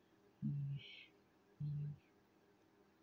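An older woman speaks briefly and quietly, close by.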